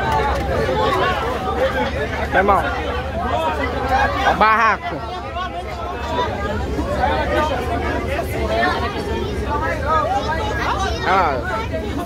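A bus engine rumbles low and steadily.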